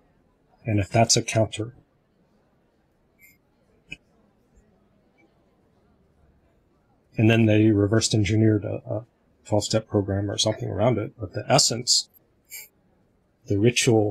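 A middle-aged man speaks calmly with animation over an online call.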